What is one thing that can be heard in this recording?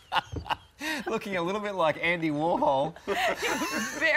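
A woman laughs heartily.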